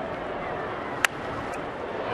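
A wooden baseball bat cracks against a ball.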